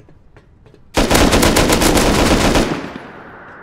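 An automatic rifle fires a rapid, loud burst that rings out.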